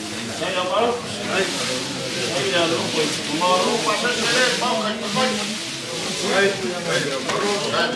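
A large woven mat rustles and drags across a woven floor.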